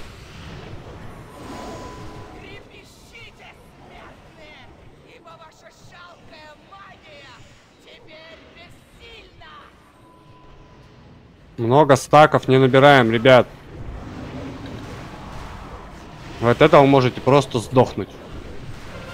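Magic spells crackle and whoosh during a fantasy battle.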